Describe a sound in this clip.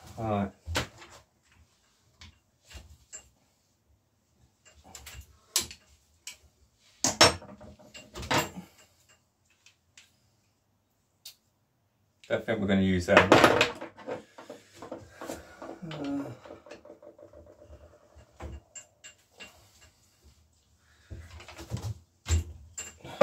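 Metal parts click and knock as a brake lever is handled.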